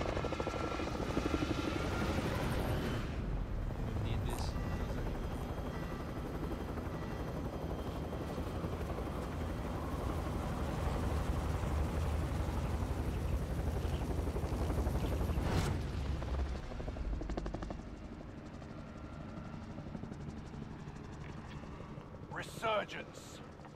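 Helicopter rotors thump and drone steadily nearby.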